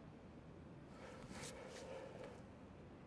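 A hand flips through record sleeves with a soft rustle.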